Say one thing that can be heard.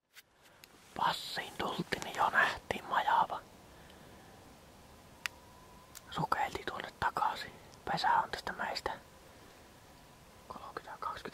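A young man speaks quietly and close by.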